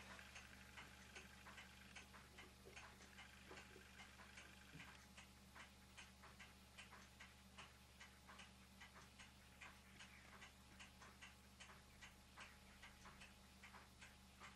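Small metal parts click and tap softly.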